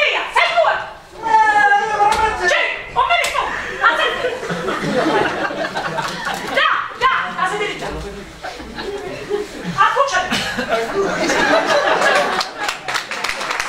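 A woman speaks loudly and with animation on a stage.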